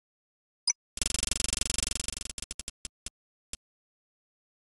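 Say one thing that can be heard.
A prize wheel spins with rapid ticking that slows to a stop.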